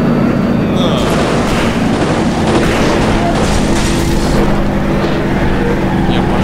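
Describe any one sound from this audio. Metal crunches and scrapes loudly in a crash.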